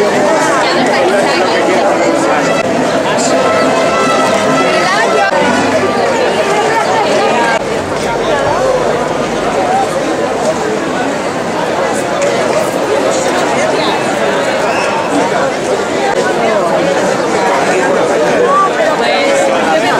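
A crowd of men and women chatter loudly all around, outdoors.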